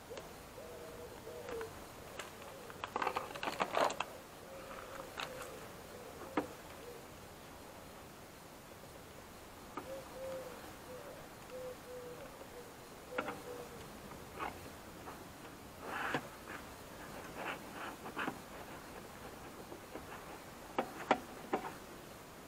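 Loose wires rustle and scrape against plastic.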